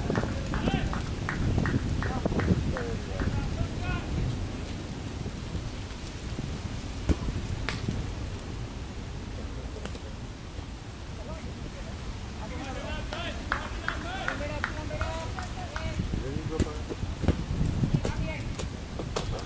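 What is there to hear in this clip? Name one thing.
Men talk and call out nearby outdoors.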